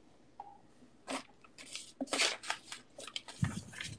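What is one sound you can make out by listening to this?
Hands shuffle and tap a thin wooden board.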